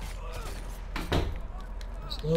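A body thuds heavily onto stone ground.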